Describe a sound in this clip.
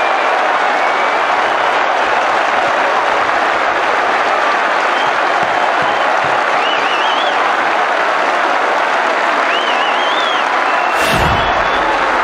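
Whistles and shrill calls rise from a stadium crowd.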